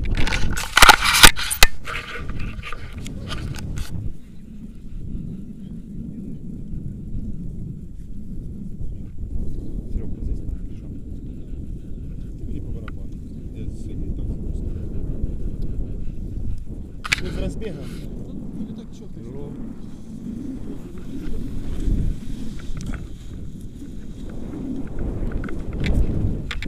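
Wind buffets a nearby microphone outdoors.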